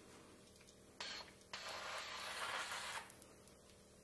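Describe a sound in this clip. A jet of spray hisses steadily.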